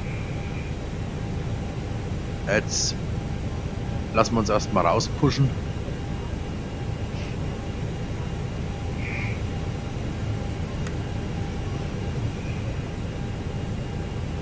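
Rain patters softly on a windscreen.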